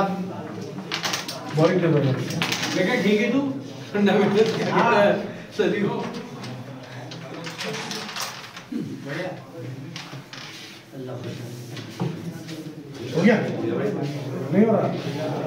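Wooden game pieces click and clack together on a board.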